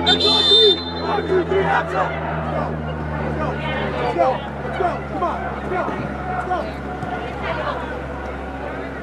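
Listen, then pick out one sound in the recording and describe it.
Young players shout to each other in a large echoing hall.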